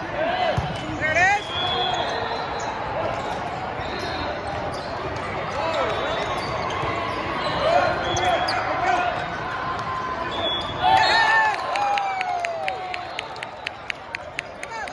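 Many voices of a crowd shout and chatter in a large echoing hall.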